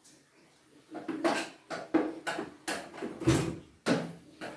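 A hand tool scrapes and taps against a door frame.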